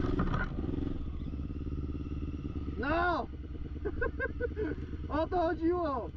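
A quad bike engine idles with a low, steady rumble.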